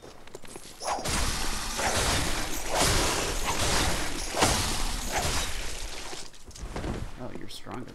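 A blade slashes and strikes a large creature.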